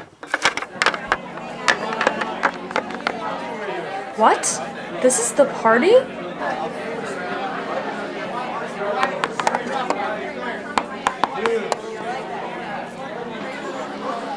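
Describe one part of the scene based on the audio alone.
Small plastic toys tap and click against a hard surface.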